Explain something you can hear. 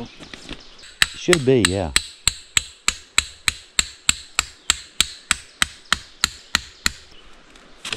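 A hammer taps rapidly and steadily on a metal stake.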